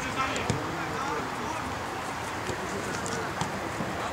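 A football thuds as it is kicked on grass.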